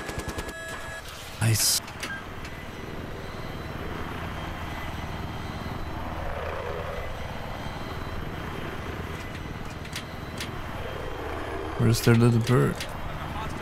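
A helicopter engine drones steadily with whirring rotor blades.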